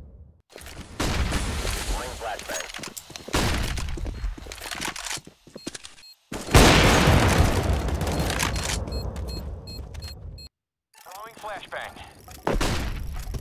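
Loud rifle shots crack and echo.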